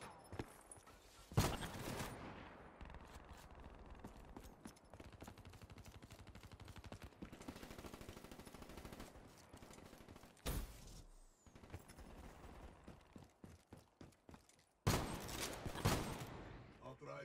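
Gunshots fire in short, loud bursts.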